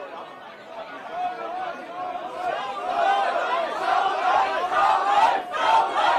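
A crowd of men and women shout and chant, growing louder.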